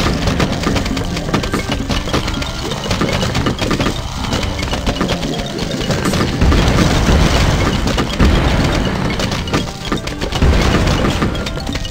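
Small popping shots fire rapidly over and over.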